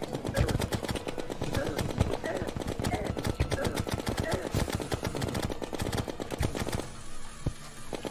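Rapid video game sound effects of hits and shots clatter.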